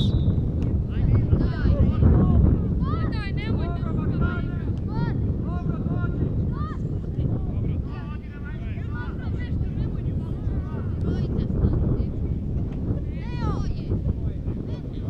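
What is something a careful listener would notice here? Young men shout to each other across the field.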